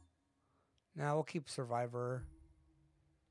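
A young man speaks briefly and loudly into a close microphone.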